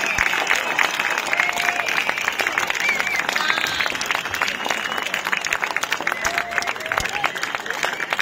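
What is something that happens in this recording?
A crowd of people talks and cheers nearby.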